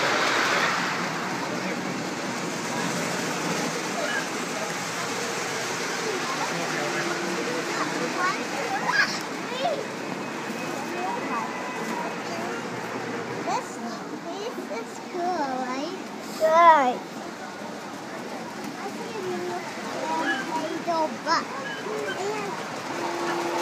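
A model train rumbles along its track.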